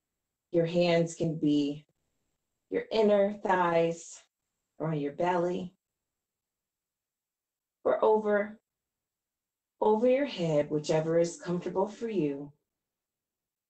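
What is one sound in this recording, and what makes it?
A woman speaks calmly, in short phrases, through an online call.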